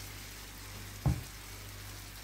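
A metal fork taps against a pan.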